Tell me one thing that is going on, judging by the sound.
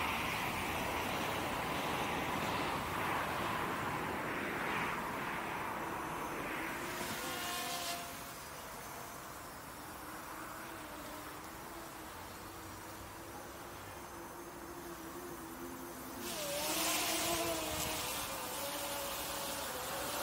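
A small drone buzzes overhead, its whine rising and falling in pitch as it flies.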